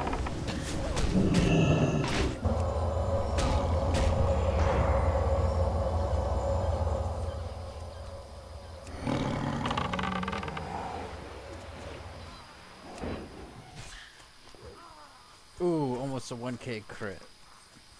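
Game spells crackle and whoosh during a fight.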